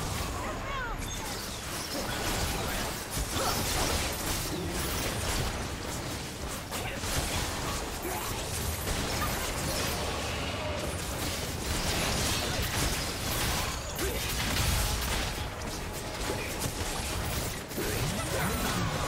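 Game sound effects of spells and weapon strikes clash in a fantasy battle.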